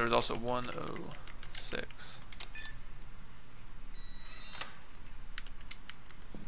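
Electronic keypad buttons beep as a code is entered.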